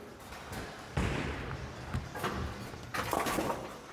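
A bowling ball thuds onto a lane and rolls with a low rumble.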